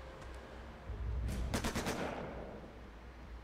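A gun fires a burst of shots.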